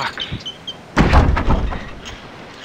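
A heavy wooden crate thuds down onto wooden planks.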